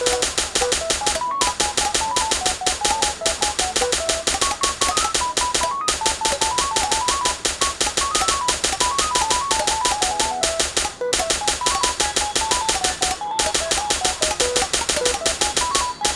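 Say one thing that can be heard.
A toy gun pops as it fires at targets.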